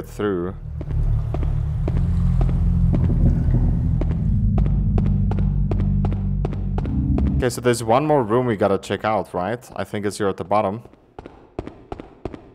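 Footsteps tap quickly on a hard stone floor.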